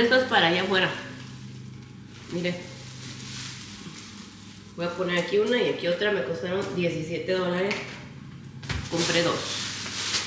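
Wicker baskets creak and rustle as they are handled.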